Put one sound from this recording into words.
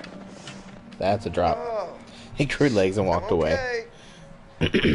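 A young man groans and speaks weakly, close by.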